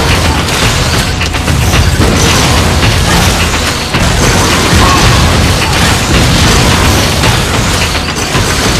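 Video game blasters fire in quick bursts.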